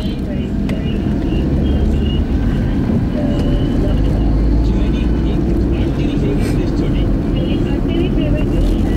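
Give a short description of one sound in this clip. A small hatchback drives on a paved road, its engine and road noise heard from inside.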